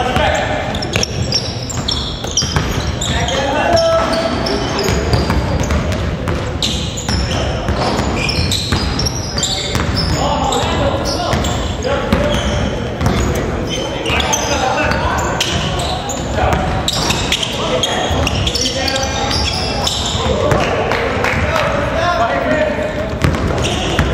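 A basketball bounces on a hard floor, echoing in a large hall.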